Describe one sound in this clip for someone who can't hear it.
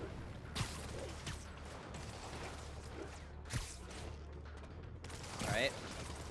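Short sharp whooshes of webs shooting out come again and again.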